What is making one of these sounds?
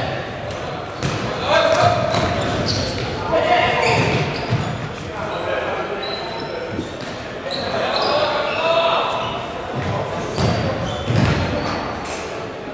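Men shout to each other across the court.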